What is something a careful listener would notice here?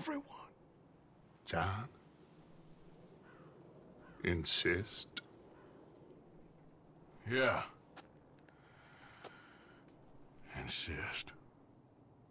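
A man speaks slowly in a deep, rough voice.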